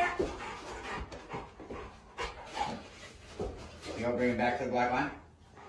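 A large dog's paws pad on a hard floor.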